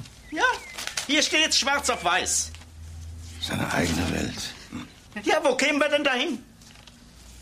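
Another elderly man answers with animation.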